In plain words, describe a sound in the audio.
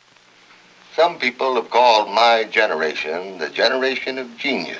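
An elderly man speaks up close with feeling.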